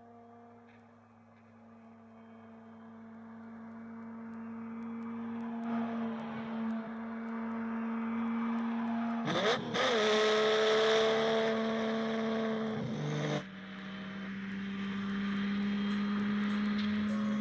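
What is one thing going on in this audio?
A sports car engine roars steadily, growing louder as it nears.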